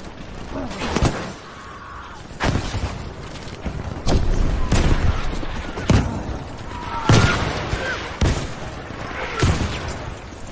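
Explosions boom at intervals, some close and some distant.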